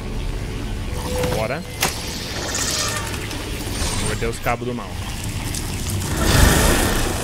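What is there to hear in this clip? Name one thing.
A charged electronic hum and whoosh swells from a game.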